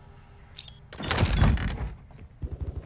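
A metal crate lid clanks open.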